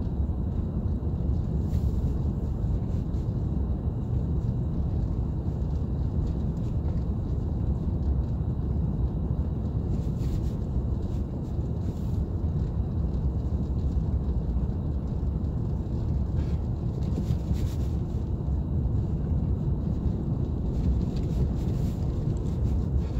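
A car engine rumbles steadily as the car drives slowly.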